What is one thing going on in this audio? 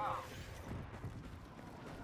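A blaster rifle fires a shot.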